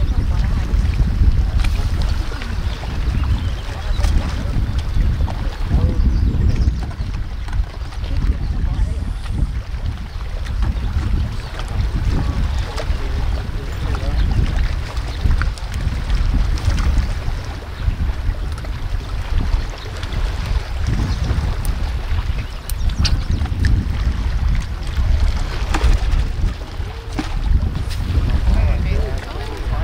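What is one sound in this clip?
Wind blows strongly outdoors by open water.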